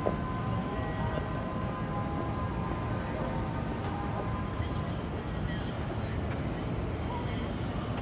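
Footsteps pass close by on paving.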